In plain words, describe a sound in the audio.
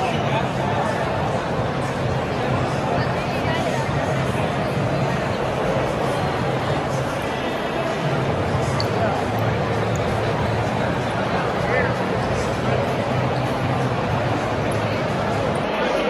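A large crowd chatters and murmurs in a big echoing hall.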